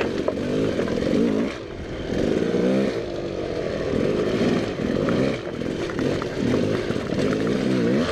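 Tyres crunch and clatter over loose rocks.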